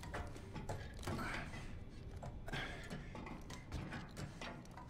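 Hands and boots clang on a metal ladder.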